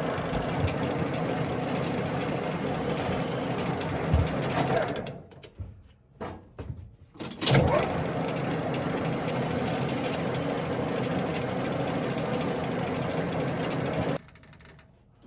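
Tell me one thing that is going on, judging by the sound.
A metal lathe whirs steadily.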